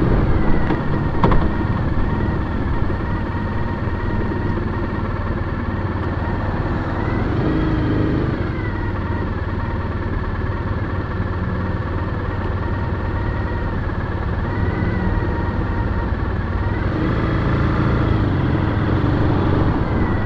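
Traffic rumbles nearby.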